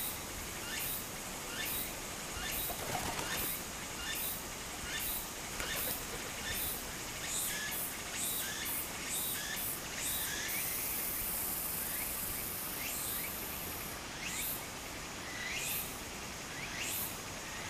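Shallow water trickles and gurgles steadily outdoors.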